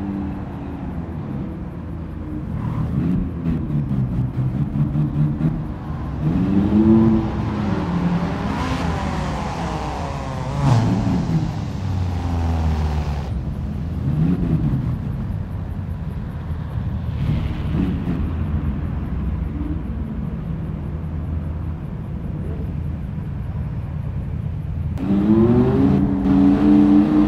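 A sports car engine idles and revs up and down.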